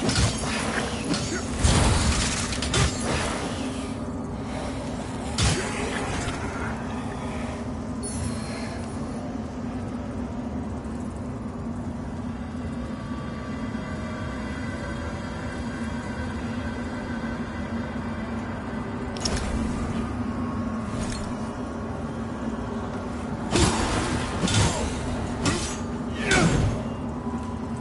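Heavy blows and magic blasts crash in short bursts.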